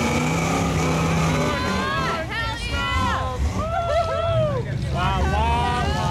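Thick mud squelches and splashes under spinning tyres.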